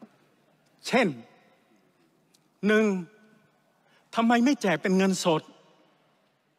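A middle-aged man speaks forcefully into a microphone in a large echoing hall.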